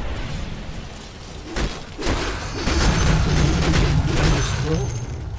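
Spell effects crackle and burst in a game battle.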